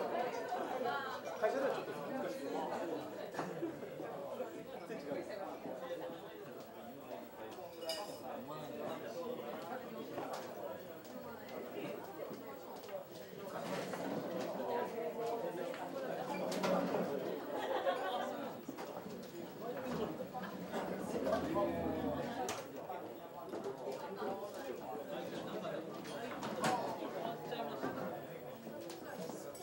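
A crowd of men and women chatter in a busy, lively room.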